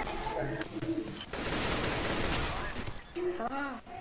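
A shotgun fires a loud shot.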